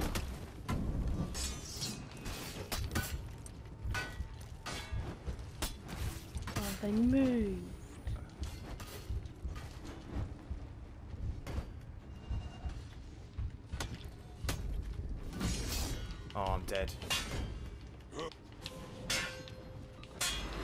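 Metal weapons clash and clang in a sword fight.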